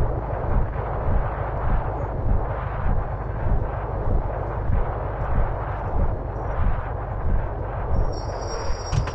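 A bus engine hums steadily with a low, pulsing rumble.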